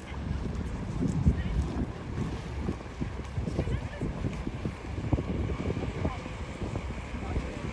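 Water laps against the side of a passing boat.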